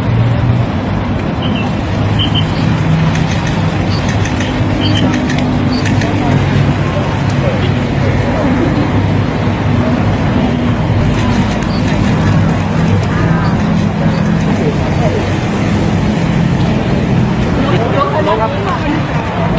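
A crowd of men and women chatters loudly all around, close by.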